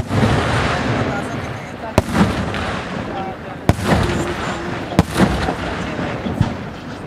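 Fireworks crackle and rumble after each burst.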